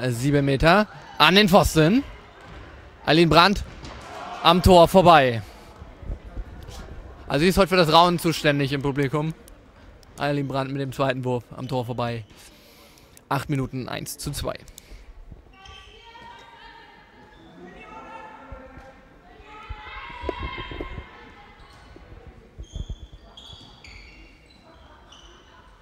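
A handball bounces on the court floor.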